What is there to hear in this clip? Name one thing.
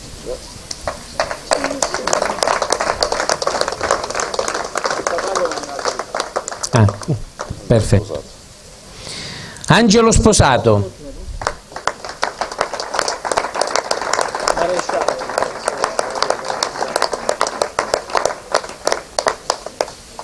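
A small group of people applaud.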